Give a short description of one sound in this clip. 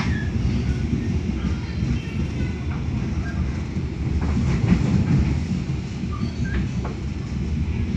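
Traffic passes by outside.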